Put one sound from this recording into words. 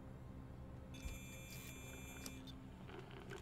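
A handheld electronic device gives a series of high electronic beeps.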